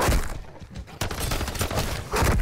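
A pistol fires several rapid shots.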